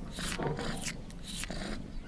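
A kitten meows.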